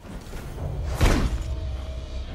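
A heavy blow lands with a dull thud.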